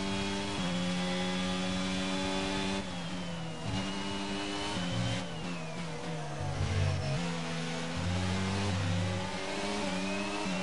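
A racing car engine revs high and shifts through the gears.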